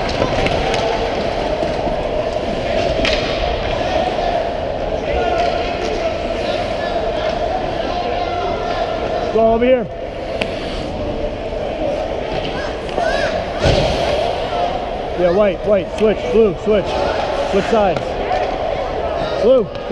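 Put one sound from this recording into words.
Ice skates scrape and carve across the ice.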